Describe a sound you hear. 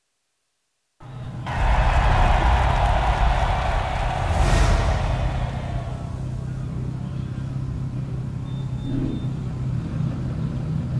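Toy race car engines hum and whine.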